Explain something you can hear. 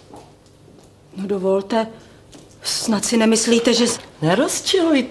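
A younger woman answers quietly.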